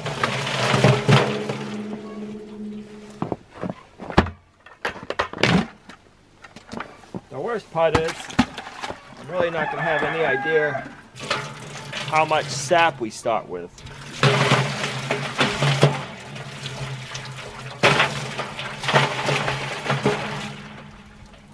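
Water splashes and gurgles as it is poured into a metal pot.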